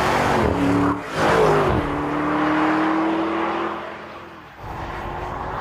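A V8 SUV drives away and fades into the distance.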